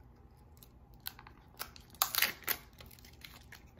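A small foil wrapper crinkles between fingers.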